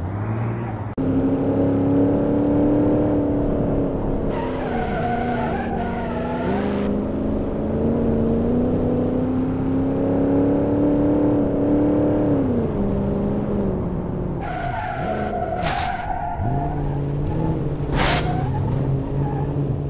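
A car engine drones steadily, rising and falling as it speeds up and slows down.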